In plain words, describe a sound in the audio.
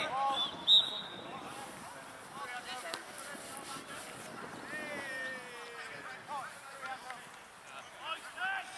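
Men shout to each other at a distance across an open field.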